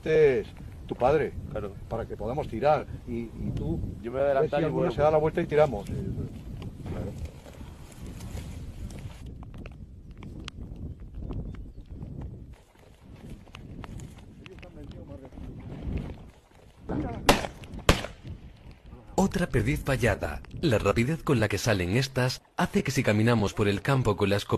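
A man talks with animation outdoors, close by.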